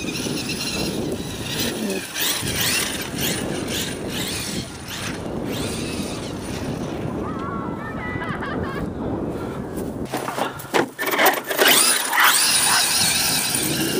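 A small electric motor whines as a toy car races over grass.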